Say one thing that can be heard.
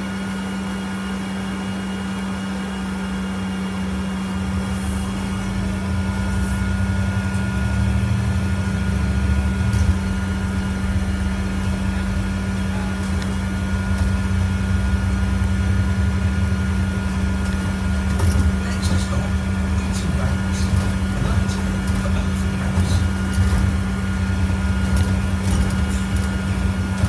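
A bus engine hums and rumbles steadily from inside the bus.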